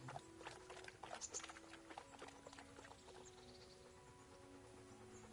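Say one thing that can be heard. A horse's hooves clop on a dirt path.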